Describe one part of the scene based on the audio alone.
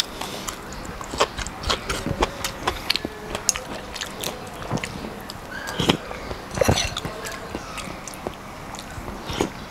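A man chews food and smacks his lips close to a microphone.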